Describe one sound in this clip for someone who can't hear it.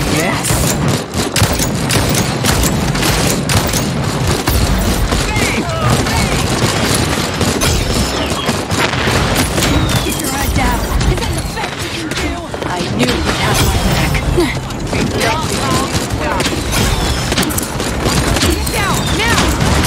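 Game gunshots fire in quick bursts.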